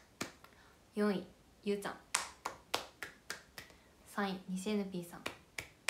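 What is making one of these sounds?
A young woman speaks with animation, close to the microphone.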